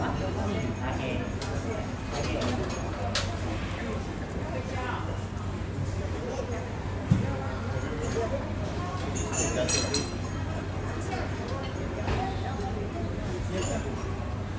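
A knife slices through crisp roast duck skin.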